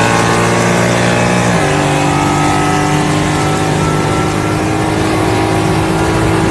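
A sports car engine roars loudly close by, dropping in pitch as it shifts gear.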